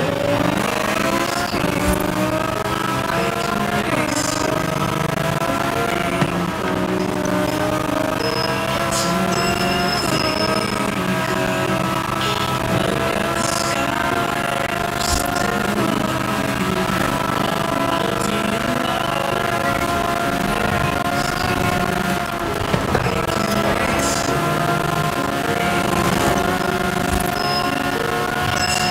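A sports car engine roars at high revs, shifting up through the gears.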